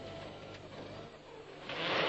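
Slush splashes against a car's windscreen.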